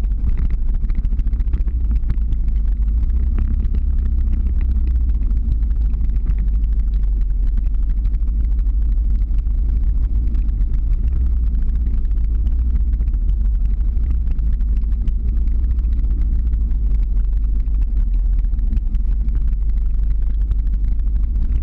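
Skateboard wheels roll and rumble on asphalt.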